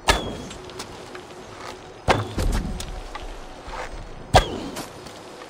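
A bowstring snaps sharply as arrows are loosed.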